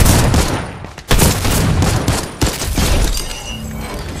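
A rifle fires in loud rapid bursts.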